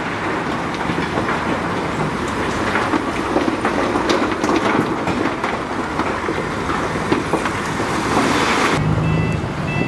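A bulldozer engine rumbles loudly close by.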